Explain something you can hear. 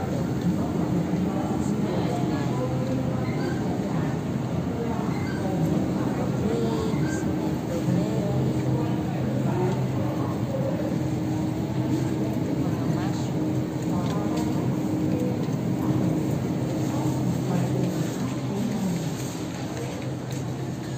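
Refrigerated display cases hum steadily.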